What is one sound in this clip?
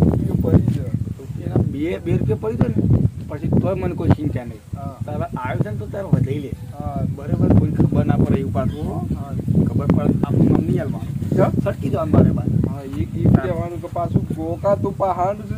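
A man answers in a firm, scolding voice.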